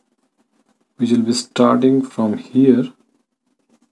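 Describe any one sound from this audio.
A young man speaks calmly and clearly, close by.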